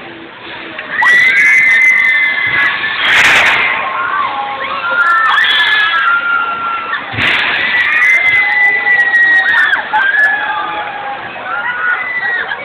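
Many riders scream loudly and shrilly.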